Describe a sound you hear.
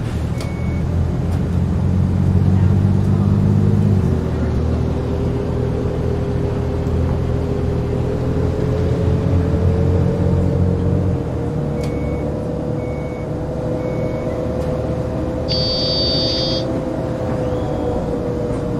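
A bus engine hums steadily and slowly rises in pitch as it speeds up.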